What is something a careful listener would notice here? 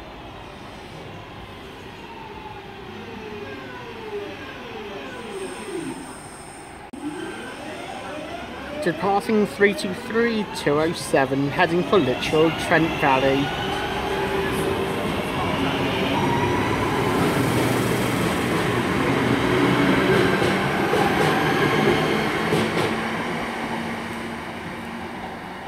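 A train rumbles closer and passes by loudly.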